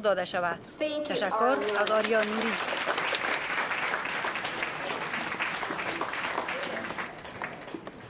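An audience applauds in an echoing hall.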